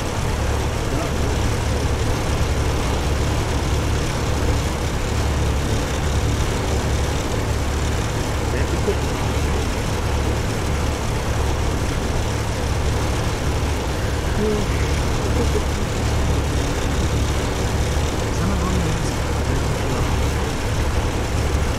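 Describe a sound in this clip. Tyres roll over a dirt road.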